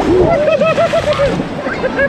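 Water splashes over people.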